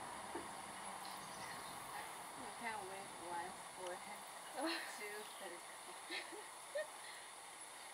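A girl talks briefly nearby.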